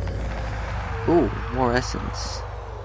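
A zombie groans nearby.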